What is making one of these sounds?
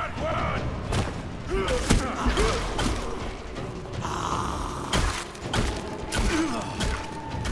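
Heavy blows thud and slash in a fight.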